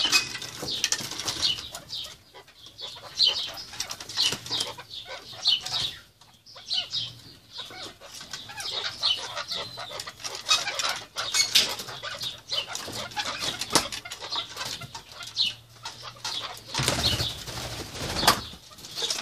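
Partridges call with repeated sharp chirps close by.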